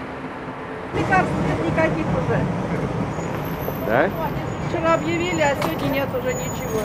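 Women talk nearby outdoors, in a low murmur.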